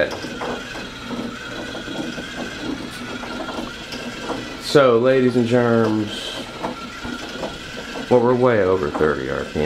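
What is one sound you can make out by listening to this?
A small weight rolls and rumbles across a board.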